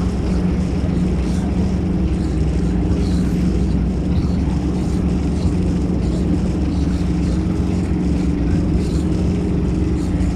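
Water splashes from an outlet into the sea.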